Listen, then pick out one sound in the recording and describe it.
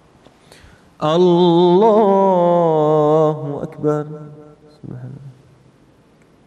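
A man chants a long, drawn-out call through a microphone in an echoing hall.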